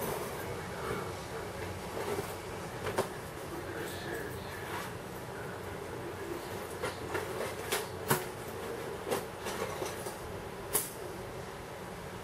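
Books and objects knock softly onto a bed.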